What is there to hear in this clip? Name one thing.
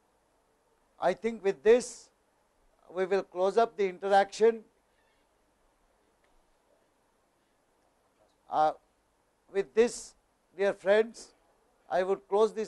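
An older man speaks steadily and clearly, as if addressing an audience, with short pauses.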